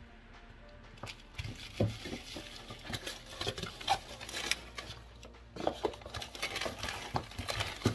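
Small objects clatter and knock as they are handled close by.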